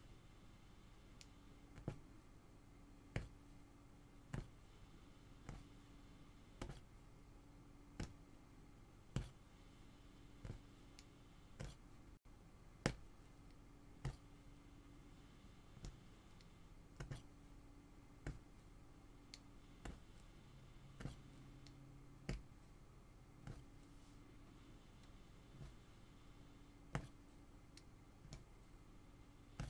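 A punch needle pokes through stretched cloth with soft, regular thuds.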